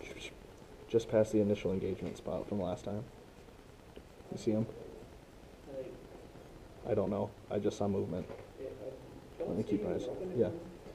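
A young man talks nearby in short bursts.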